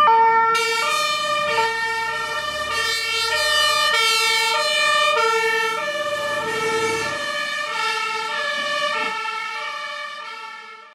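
A two-tone fire engine siren blares close by and fades at the end.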